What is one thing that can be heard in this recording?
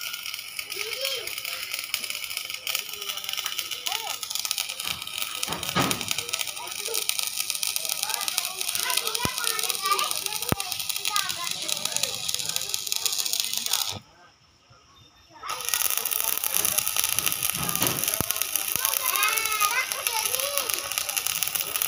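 An electric welding arc crackles and hisses steadily.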